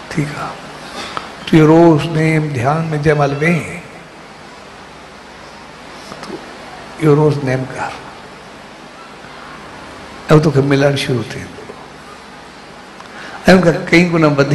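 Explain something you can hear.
A middle-aged man sings into a microphone in short phrases with pauses between them.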